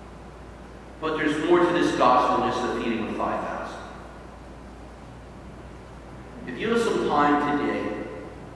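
An elderly man speaks calmly through a microphone in an echoing hall, with pauses between phrases.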